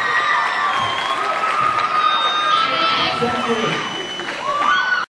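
A rock band plays live in a large echoing hall.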